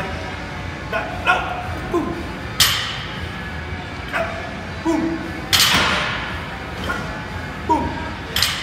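Weight plates on a barbell clank.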